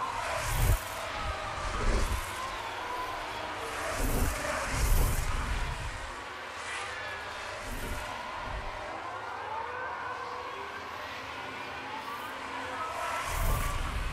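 Racing car engines whine at high speed.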